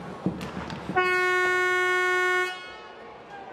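A loud arena horn blares steadily, then stops.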